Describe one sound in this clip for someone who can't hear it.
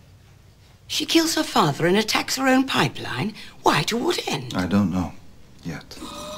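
An elderly woman speaks firmly and calmly nearby.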